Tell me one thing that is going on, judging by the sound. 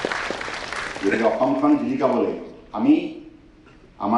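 A middle-aged man speaks forcefully through a microphone.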